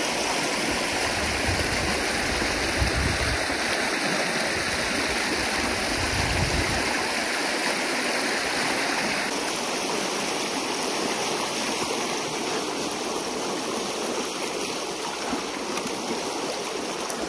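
Water rushes and gurgles steadily through a gap in a small dam.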